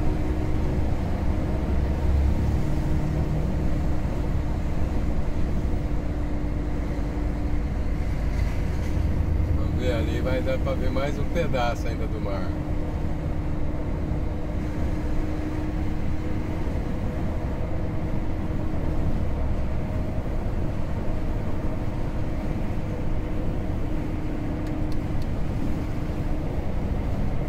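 Tyres roar steadily on the road.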